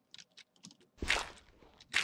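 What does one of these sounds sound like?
A shovel digs into dirt with soft crunches.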